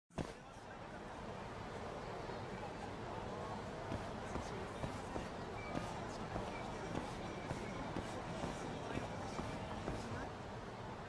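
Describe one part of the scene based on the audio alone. Footsteps tap steadily on wet pavement.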